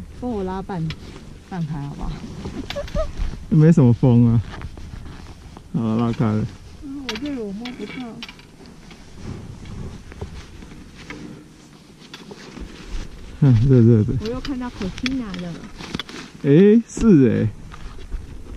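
A man speaks close by in short, lively bursts.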